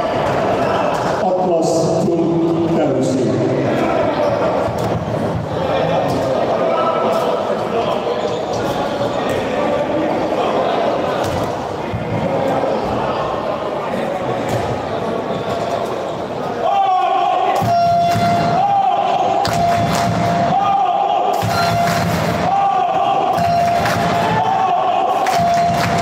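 A handball thuds on a hard floor.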